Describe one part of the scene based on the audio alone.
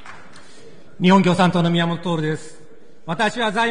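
A man speaks formally into a microphone in a large hall.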